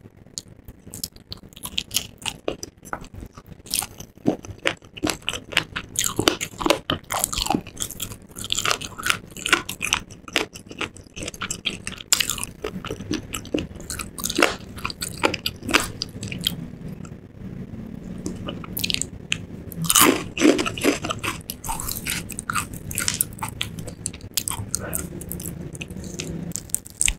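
A woman chews crunchy fried food close to a microphone.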